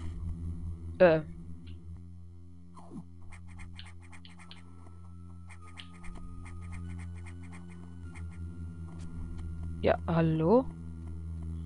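A sharp sweeping electronic sound effect rises and falls.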